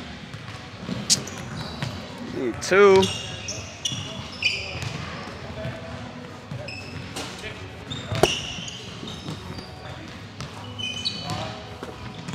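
Basketballs bounce on a hardwood floor in a large echoing gym.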